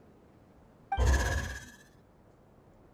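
A small robot lets out a short, loud electronic chirp.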